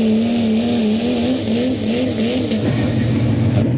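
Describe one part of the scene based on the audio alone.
A diesel truck engine roars loudly under heavy strain.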